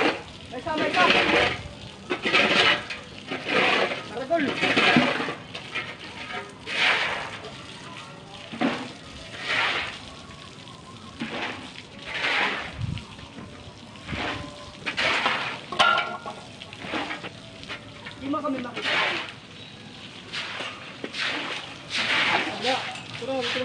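A shovel scrapes repeatedly across a concrete floor.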